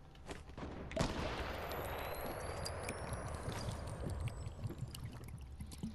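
A character gulps down a potion with a fizzing sound.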